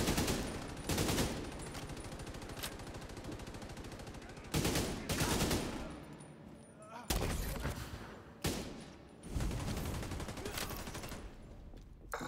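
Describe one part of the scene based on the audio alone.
A rifle fires in bursts of loud shots.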